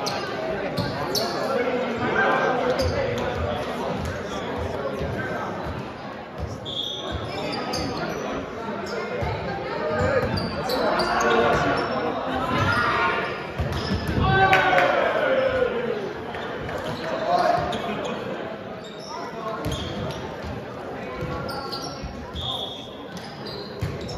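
Young men talk and call out across a large echoing gym.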